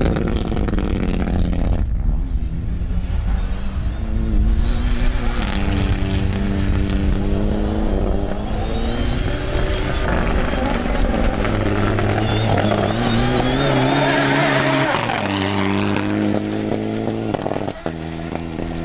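A rally car engine revs loudly and roars through gear changes.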